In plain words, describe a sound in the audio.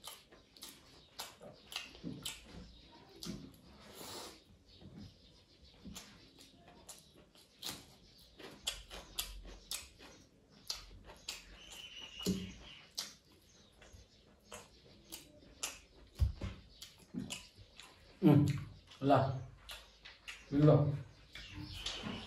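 A man chews food with smacking sounds close to the microphone.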